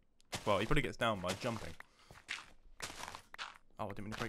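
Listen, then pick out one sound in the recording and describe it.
Dirt crunches as a shovel digs into it.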